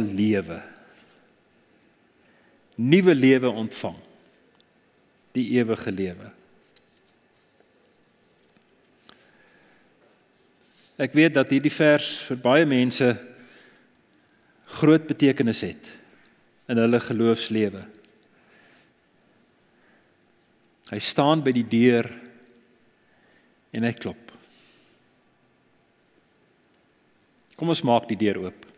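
An older man speaks with animation into a microphone, in short bursts with pauses, in a reverberant room.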